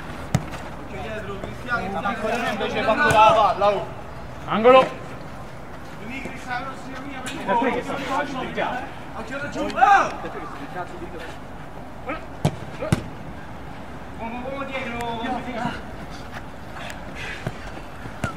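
A football is kicked with a dull thump.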